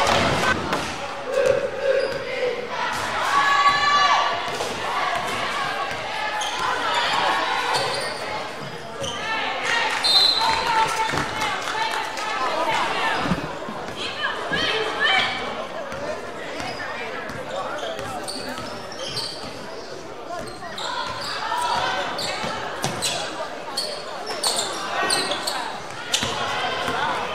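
Spectators cheer and shout from the sidelines.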